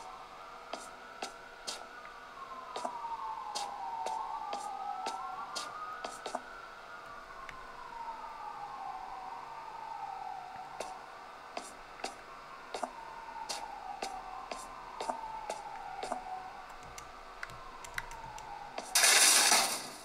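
Electronic game sound plays from a handheld console's small speakers, with a wailing tone that rises and falls.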